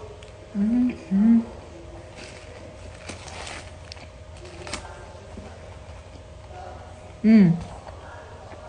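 A young woman moans with pleasure up close.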